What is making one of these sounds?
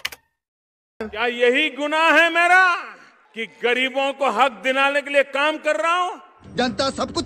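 A man speaks loudly and with animation into a microphone.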